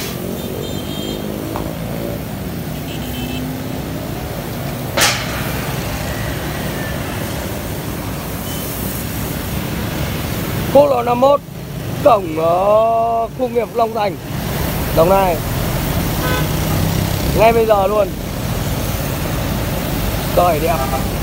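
Heavy road traffic rumbles steadily outdoors.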